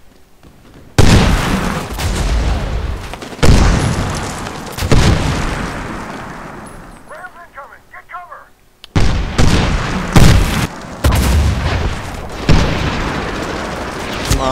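Sniper rifle shots boom loudly, several times, with echoing tails.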